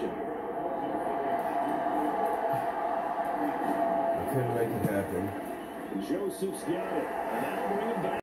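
A large stadium crowd roars and cheers steadily through a television speaker.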